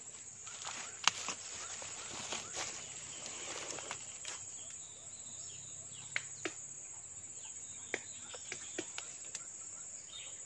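A man's hands rustle through dry leaves and twigs.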